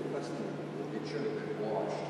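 A hand tool clicks against metal.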